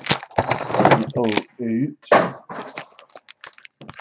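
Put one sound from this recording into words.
Foil card packs crinkle as hands sort them.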